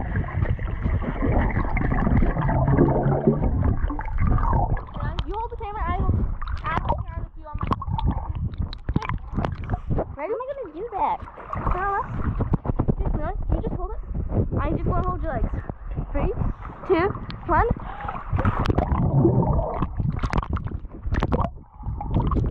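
Bubbles gurgle underwater.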